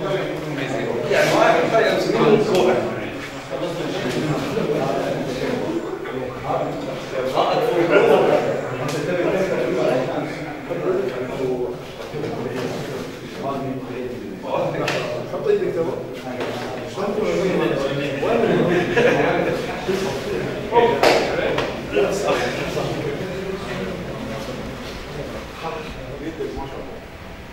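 Several men talk among themselves in a room with some echo.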